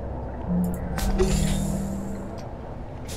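A heavy sliding door hisses open with a thud.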